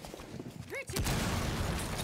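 A blast bursts and scatters rubble with a rushing hiss.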